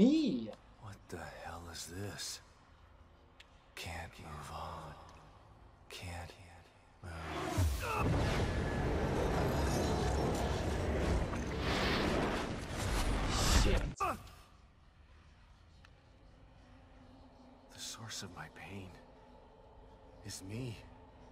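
A man speaks in a strained low voice.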